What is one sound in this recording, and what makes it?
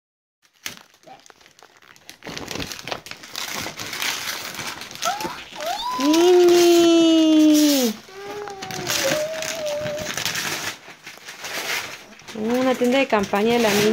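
Wrapping paper rustles and tears close by.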